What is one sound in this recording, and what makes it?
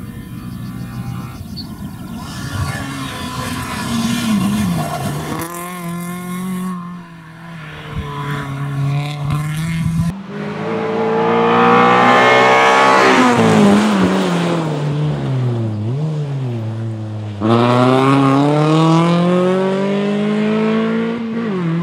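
A rally car's engine roars loudly, revving up and down through the gears.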